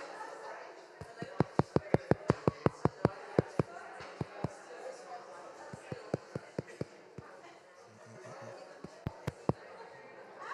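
A small audience claps in a large room.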